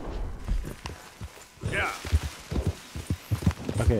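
A horse's hooves thud on soft ground.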